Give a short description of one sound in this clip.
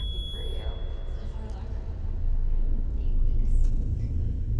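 A young woman speaks with emotion, close by.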